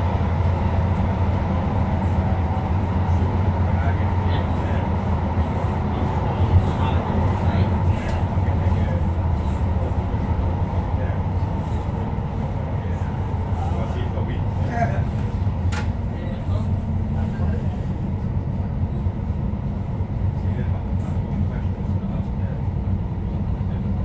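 An electric light-rail train rumbles along the track, heard from inside.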